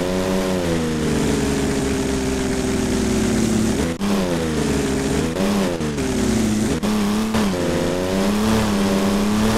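A car engine hums and revs up and down through gear changes.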